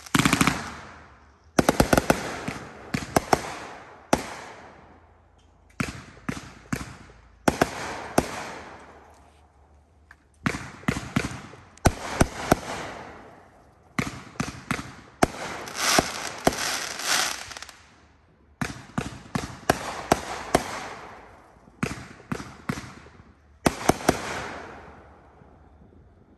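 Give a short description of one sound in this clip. Fireworks burst with loud bangs, echoing outdoors.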